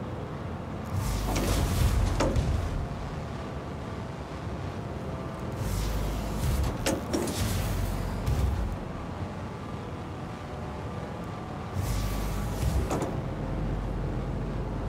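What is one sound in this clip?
Heavy metal doors slide open with a loud hiss and rumble.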